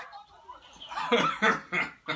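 A young man laughs heartily close by.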